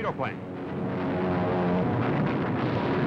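An airplane engine drones overhead.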